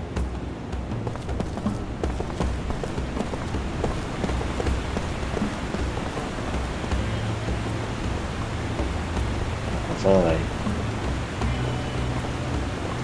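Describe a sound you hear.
Footsteps tap along a stone street.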